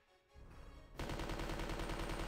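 A gun fires rapidly.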